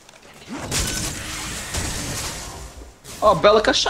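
An energy blast roars and whooshes.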